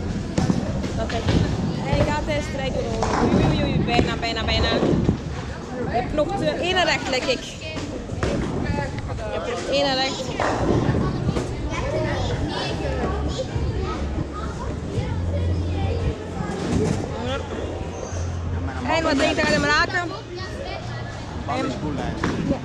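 Voices and clatter echo through a large busy hall.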